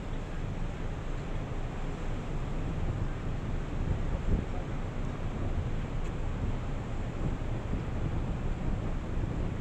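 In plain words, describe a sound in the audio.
Water churns and splashes against a wall.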